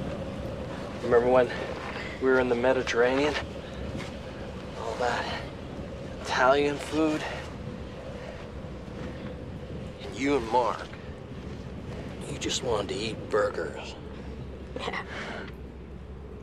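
A man speaks softly and close by.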